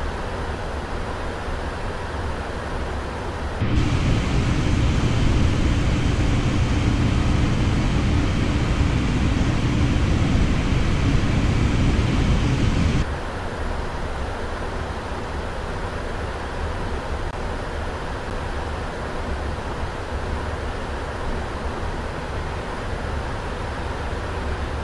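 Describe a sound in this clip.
Jet engines hum steadily inside a cockpit.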